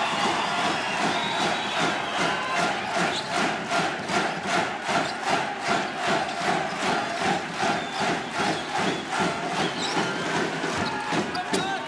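A crowd claps in a fast, steady rhythm.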